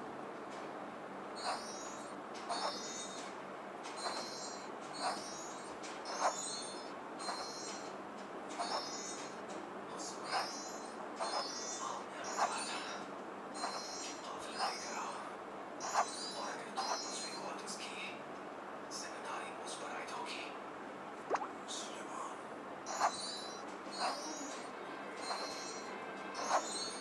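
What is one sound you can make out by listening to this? Short twinkling chimes play over and over.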